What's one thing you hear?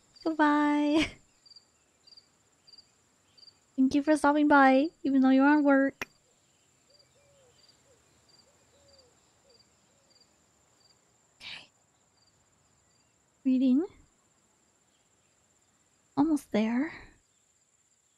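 A young woman speaks with animation through a microphone, in short bursts.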